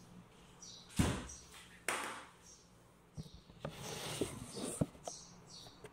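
Close knocks and rustles come from handling.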